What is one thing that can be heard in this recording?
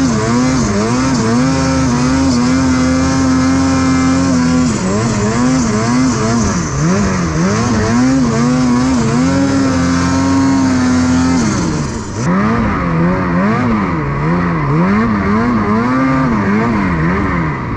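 A snowmobile engine drones close by, revving up and down again and again.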